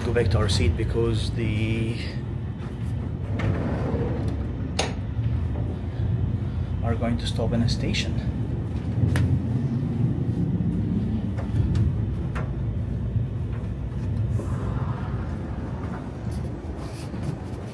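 A moving train rumbles steadily from inside a carriage.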